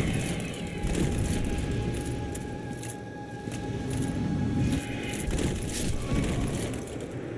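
Magic bolts whoosh and burst in quick bursts.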